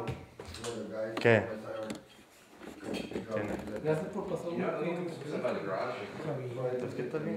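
A young man talks casually nearby.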